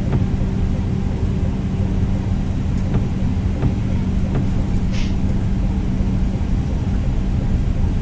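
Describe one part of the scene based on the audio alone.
Windshield wipers sweep back and forth.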